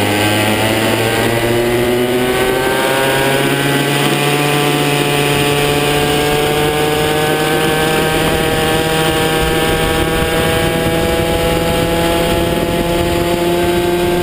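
A kart engine buzzes loudly close by, its pitch rising as it speeds up.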